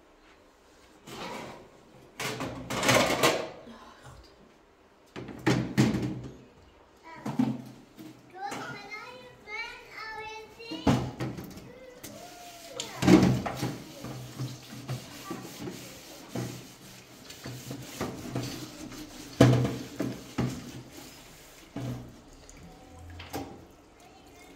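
Dishes clatter and clank in a metal sink.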